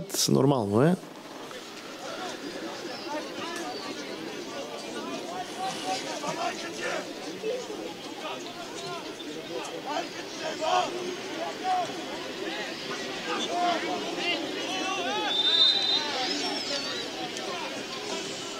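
Young men shout to each other across an open field, heard from a distance.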